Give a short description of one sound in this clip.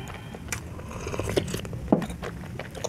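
A young woman slurps soup from a bowl.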